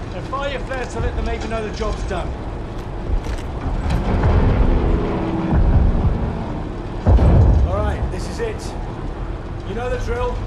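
A man speaks firmly and close by.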